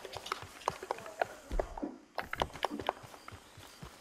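A horse gallops along a dirt path.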